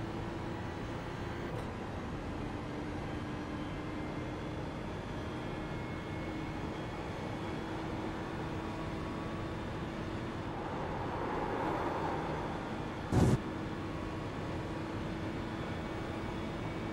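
Tyres hum on the track surface.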